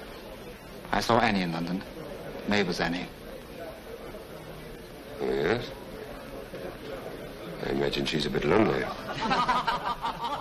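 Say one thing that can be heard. A second man answers in a firm, measured voice.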